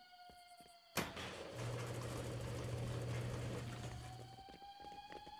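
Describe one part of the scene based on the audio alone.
A heavy metal gate rumbles as it slides open.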